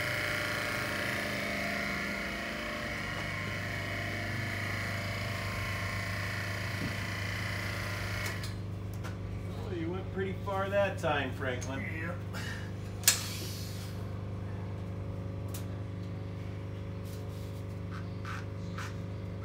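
An electric hydraulic pump motor hums steadily.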